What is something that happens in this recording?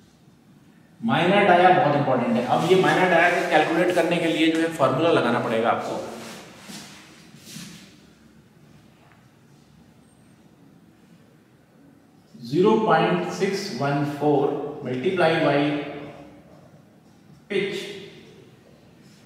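A man explains calmly and clearly, close by.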